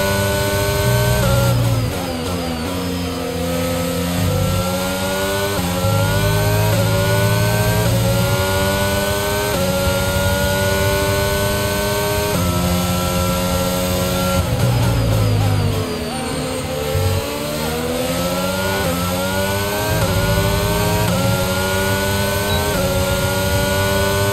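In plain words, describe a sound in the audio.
A racing car engine screams at high revs, rising in pitch through quick gear changes.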